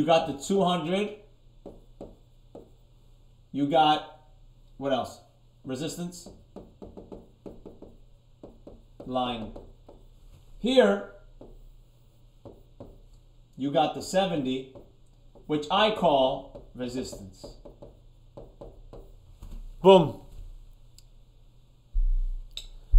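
A man speaks calmly and steadily close by, in short bursts with pauses.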